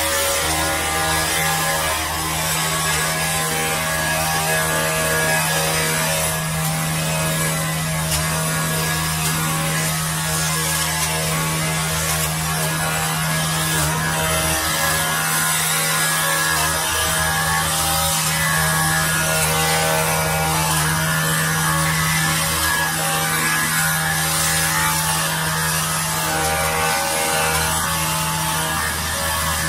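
A petrol pole saw drones steadily close by.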